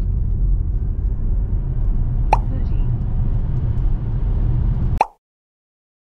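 A car's road noise rumbles steadily from inside the cabin.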